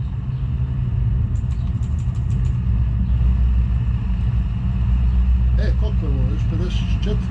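A truck engine hums with a deep, steady drone.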